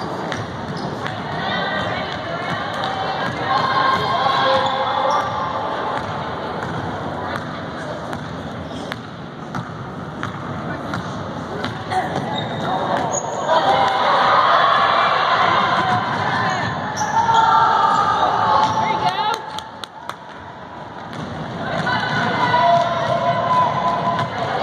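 Spectators call out and cheer from the stands.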